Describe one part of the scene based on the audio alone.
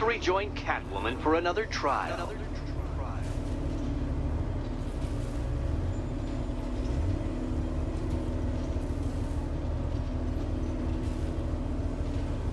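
A vehicle engine hums low and steadily.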